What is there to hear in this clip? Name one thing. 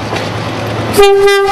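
A railcar horn blasts loudly and briefly.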